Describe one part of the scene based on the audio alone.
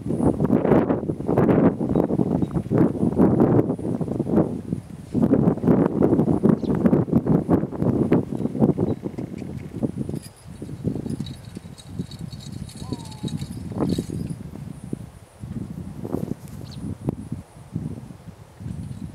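A horse-drawn mowing machine clatters and rattles across a field.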